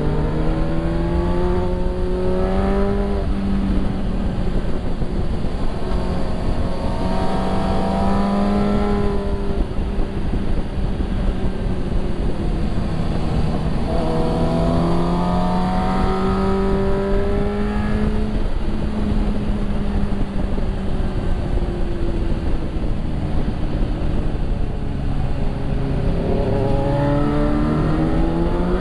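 A motorcycle engine hums and its pitch rises and falls as the rider changes speed.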